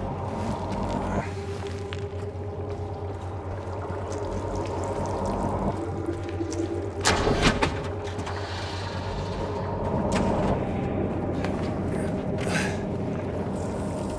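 Footsteps crunch slowly over debris.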